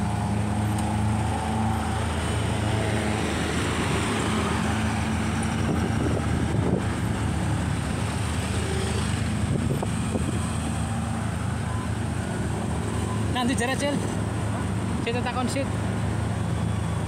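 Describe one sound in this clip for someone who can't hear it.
Motorcycle engines idle and rumble close by.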